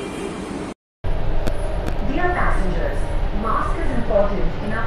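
A train rumbles along its tracks.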